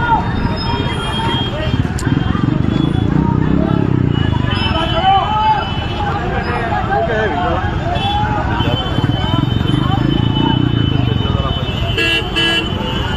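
A crowd of men talk and shout over each other nearby.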